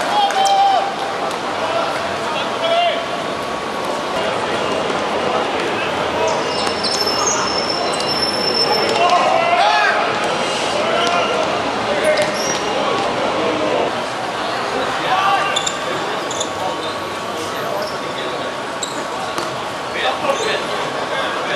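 Men shout and call out across an outdoor court.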